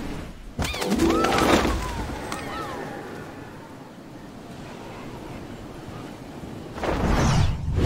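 Wind rushes past steadily during a glide through the air.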